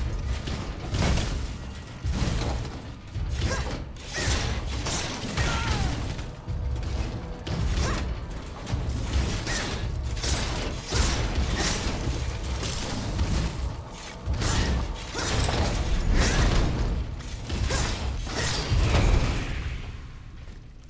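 Weapons clash and strike in a fierce fight.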